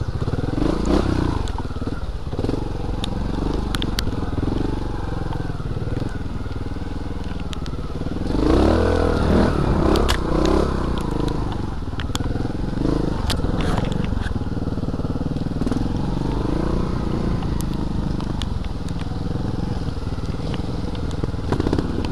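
Tyres crunch and knock over dirt and roots.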